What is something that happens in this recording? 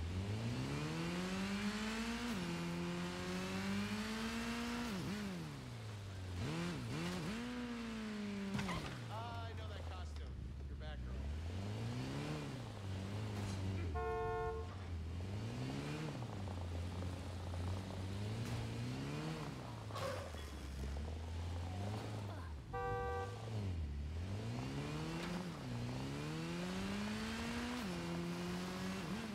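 A motorcycle engine revs and roars, rising and falling in pitch.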